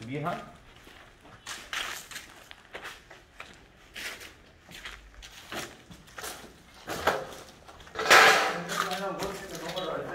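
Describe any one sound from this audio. Footsteps crunch over loose rubble and debris.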